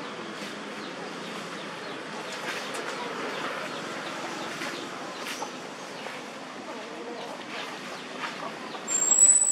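Monkeys squeak and chatter softly nearby.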